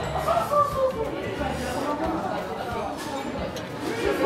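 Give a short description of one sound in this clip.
A spoon clinks against a metal cup.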